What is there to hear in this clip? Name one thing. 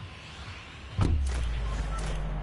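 A game character jumps from a flying vehicle with a sudden whoosh.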